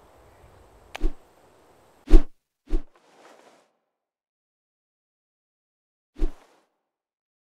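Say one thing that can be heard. Short game sound effects whoosh and pop.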